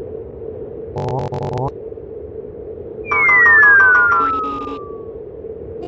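Quick electronic blips chirp from a video game.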